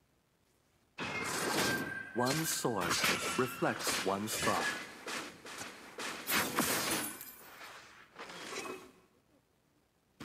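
Magic blasts and blows clash in a game battle.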